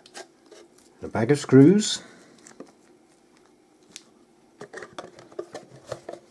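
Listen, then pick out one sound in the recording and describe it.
A plastic connector clicks and rattles as it is handled.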